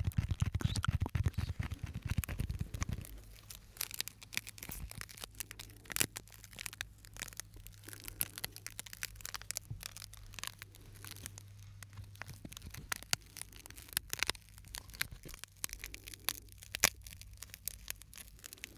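Plastic crinkles and crackles close to a microphone.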